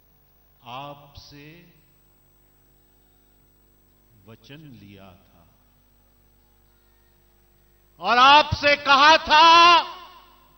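An elderly man speaks forcefully into a microphone over loudspeakers, his voice rising to a shout.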